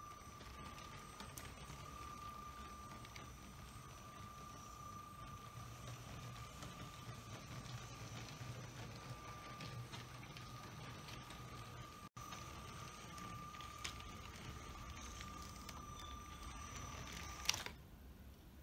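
A small toy train hums quietly as it runs along plastic track.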